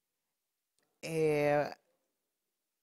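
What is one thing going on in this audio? A middle-aged woman speaks briefly into a microphone.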